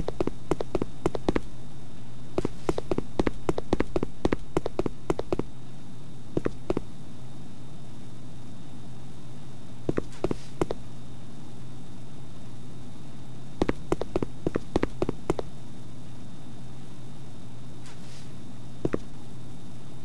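Footsteps thud on grass.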